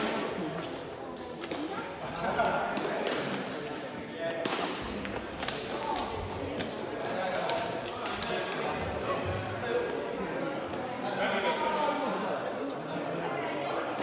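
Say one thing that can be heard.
Shuttlecocks are struck by rackets with sharp taps in a large echoing hall.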